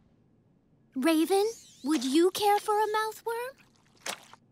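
A young woman speaks in a high, cheerful voice.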